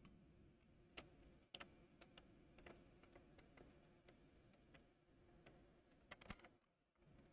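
Small plastic parts click and tap as a handheld device is handled.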